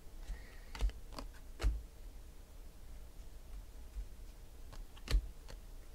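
Trading cards shuffle and flick against each other in a pair of hands.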